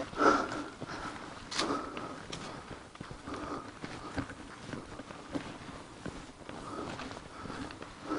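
Dry grass and brush rustle as someone pushes through.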